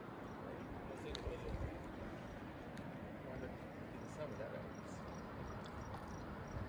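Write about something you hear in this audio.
A river flows steadily nearby.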